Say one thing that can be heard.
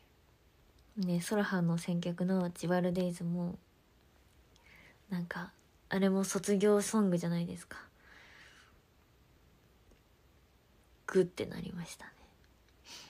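A young woman speaks softly and cheerfully close to a microphone, in short bursts.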